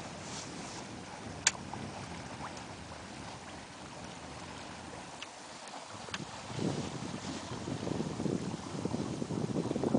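Water splashes and rushes against a sailboat's hull.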